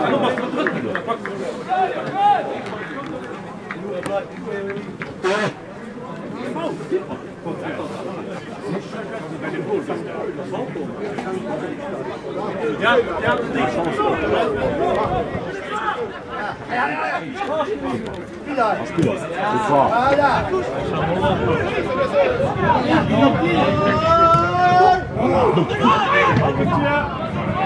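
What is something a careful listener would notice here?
Men shout to each other across an open outdoor pitch.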